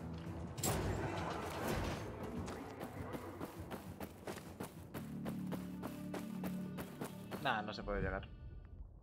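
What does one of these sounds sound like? Footsteps rush through dry grass.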